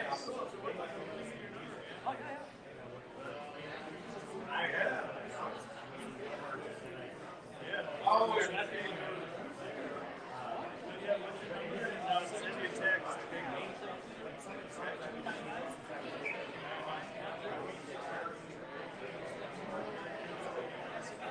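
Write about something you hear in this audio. A middle-aged man answers in conversation nearby.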